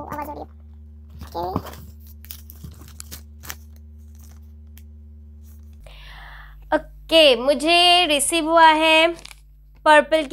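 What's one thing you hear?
Paper rustles as a packet is handled.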